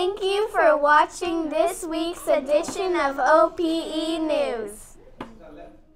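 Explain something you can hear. Two young girls speak together with animation, close to a microphone.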